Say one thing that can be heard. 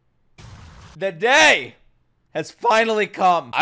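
A young man exclaims loudly into a close microphone.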